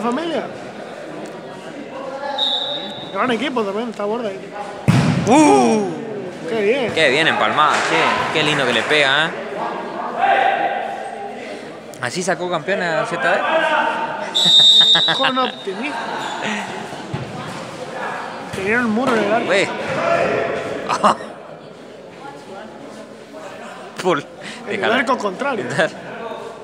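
Young women shout and call out across a large echoing indoor court.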